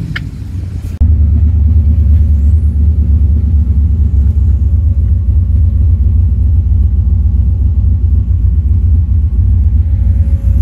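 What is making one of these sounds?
A car engine rumbles loudly and steadily from inside the car as it drives.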